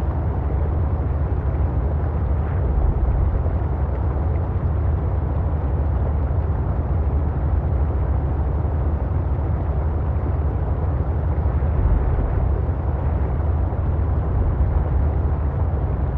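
A vehicle's engine hums steadily underwater.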